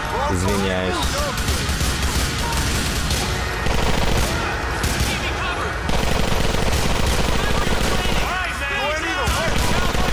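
Guns fire in rapid bursts, echoing in an enclosed space.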